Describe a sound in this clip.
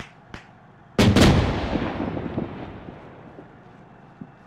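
A loud explosion booms in the distance and rumbles slowly away.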